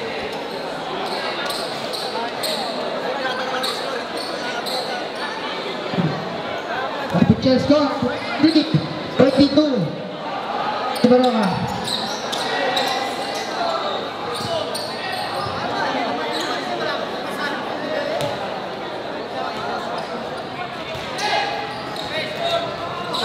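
A large crowd chatters and murmurs in an echoing gym.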